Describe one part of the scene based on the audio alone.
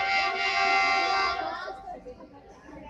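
A train horn blares loudly from down the track.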